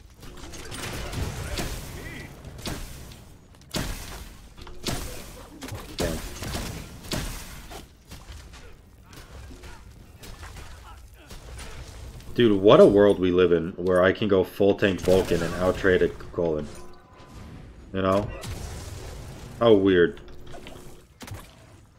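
Game sound effects of fighting and spell blasts play.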